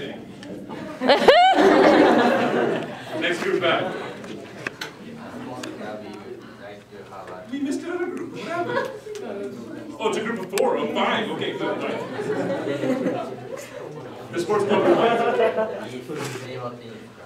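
Teenage boys chatter and laugh nearby.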